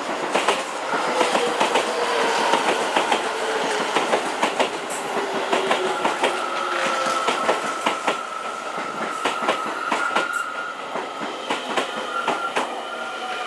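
Train brakes squeal as the train slows.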